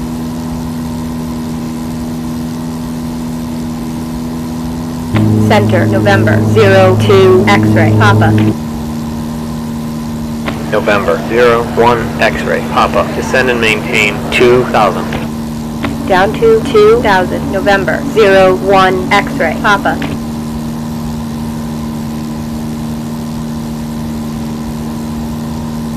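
A small propeller aircraft engine drones steadily.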